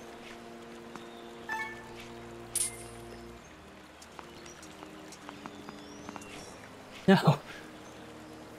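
Gentle game music plays with soft held notes.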